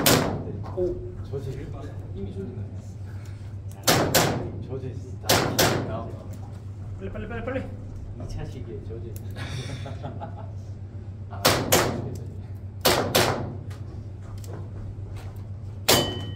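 Gunshots crack in quick pairs, echoing in a large hall.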